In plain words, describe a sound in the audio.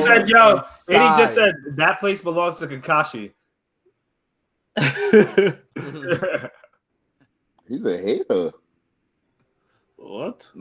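Young men talk and laugh with animation over an online call.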